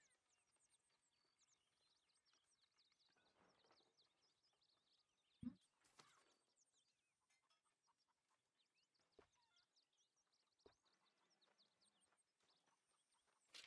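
Paper pages flip over with a soft rustle.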